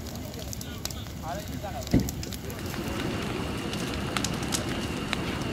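A large fire roars and crackles outdoors.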